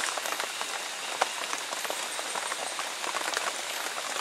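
Bamboo skewers click and rattle softly as meat is arranged on them.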